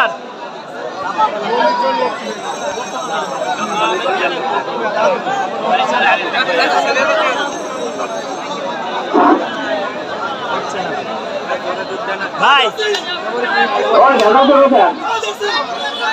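A large outdoor crowd chatters and shouts throughout.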